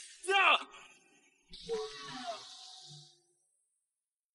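A young man cries out in alarm.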